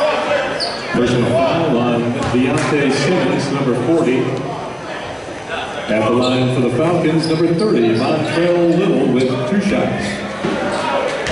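A man speaks loudly nearby.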